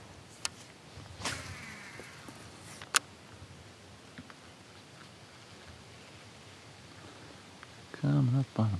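Water laps softly against a kayak hull.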